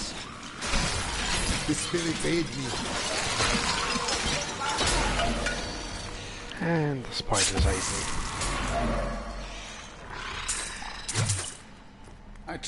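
Game combat sounds clash and burst loudly.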